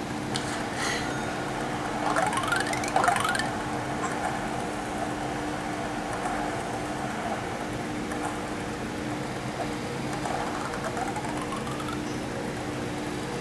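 Upbeat game music plays from a small phone speaker.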